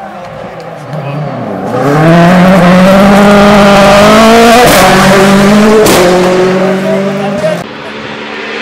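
A rally car engine roars loudly as the car passes close by on gravel.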